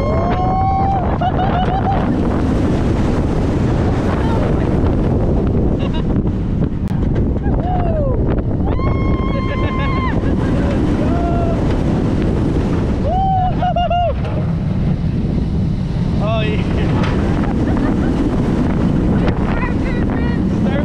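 A roller coaster's wheels rumble and rattle along the track.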